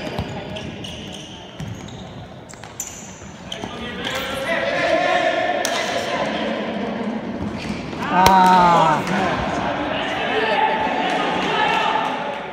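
Sports shoes squeak on an indoor court floor.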